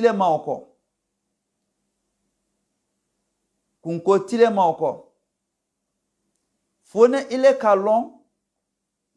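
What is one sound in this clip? An elderly man speaks slowly and calmly into a close microphone, in short phrases with long pauses.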